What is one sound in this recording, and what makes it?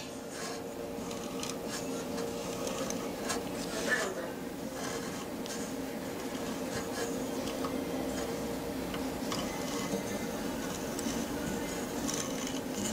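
A small machine hums steadily.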